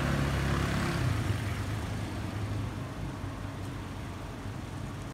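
A car engine idles nearby and fades as the car pulls away.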